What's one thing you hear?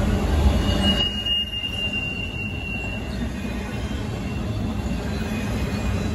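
Freight cars clatter and rumble over the rails.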